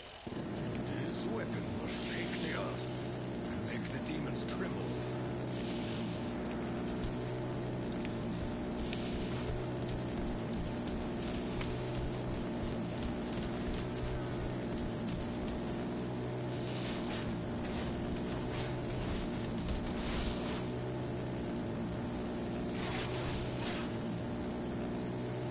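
A gun fires rapid bursts of flame.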